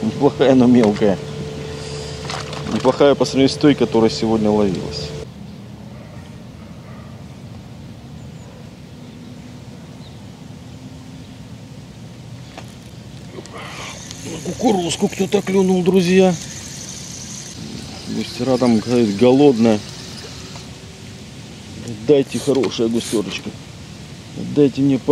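Water laps gently at a shore.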